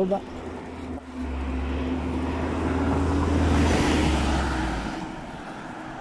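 A van drives past close by.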